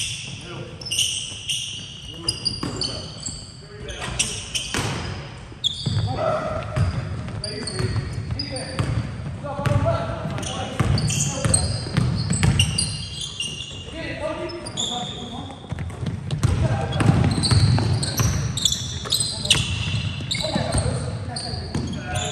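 Sneakers squeak sharply on a wooden gym floor.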